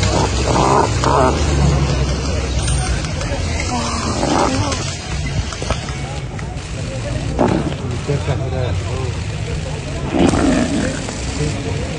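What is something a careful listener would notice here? An animal bellows in distress.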